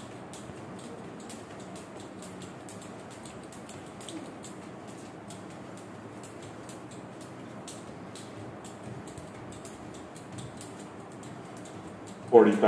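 A skipping rope slaps the floor in a quick, steady rhythm.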